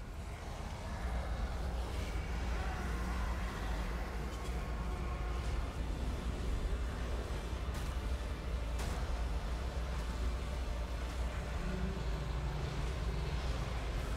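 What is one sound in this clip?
A deep, steady rumble drones on.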